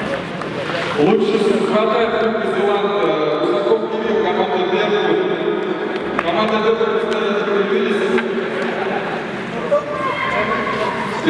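A man speaks into a microphone, heard through loudspeakers in a large echoing arena.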